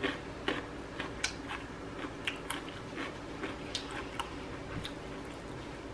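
A woman chews crunchy raw vegetables up close.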